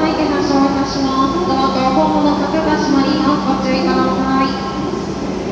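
A young child talks nearby.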